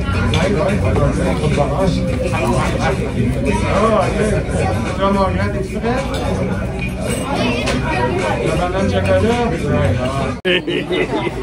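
Middle-aged women talk calmly close by.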